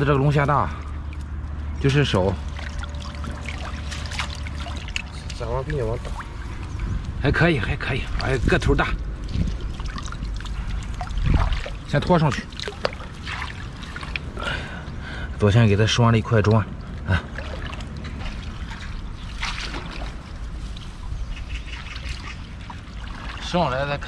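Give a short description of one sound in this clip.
Water splashes and drips as a net is lifted out of shallow water.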